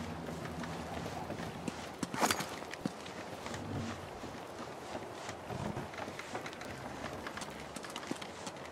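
Footsteps tread softly on a stone floor.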